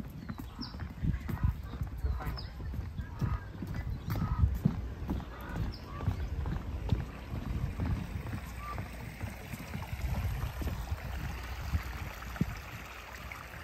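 Footsteps tread on a wooden walkway.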